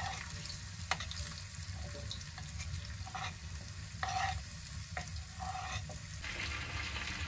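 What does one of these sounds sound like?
Food pieces slide off a wooden board into a sizzling pan.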